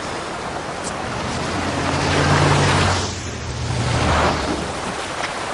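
A car engine hums as a car approaches and passes.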